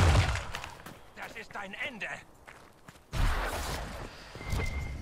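Magic spells burst and whoosh in a fight.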